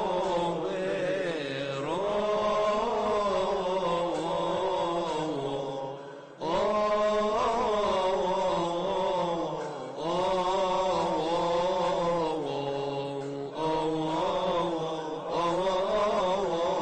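A male choir chants together in a resonant hall, heard through microphones.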